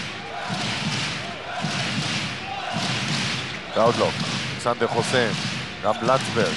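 A large indoor crowd murmurs and cheers with echo.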